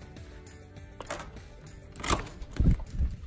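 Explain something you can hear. A door lock clicks.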